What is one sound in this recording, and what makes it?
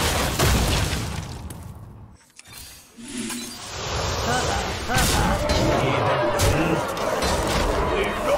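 Magical game sound effects chime and whoosh.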